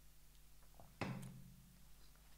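A mug is set down on a table.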